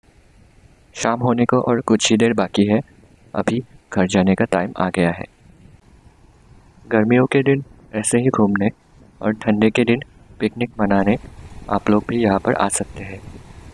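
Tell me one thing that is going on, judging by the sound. A young man speaks calmly and clearly, close to a microphone.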